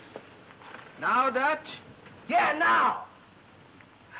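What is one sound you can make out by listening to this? A young man groans and cries out.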